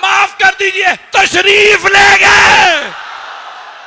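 A man preaches loudly and with passion into a microphone.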